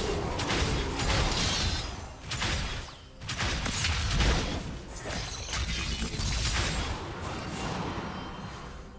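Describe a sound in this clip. Spell effects crackle and burst in a fast game battle.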